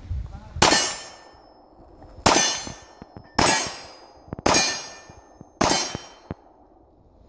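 A pistol fires five sharp shots in quick succession outdoors, each echoing briefly.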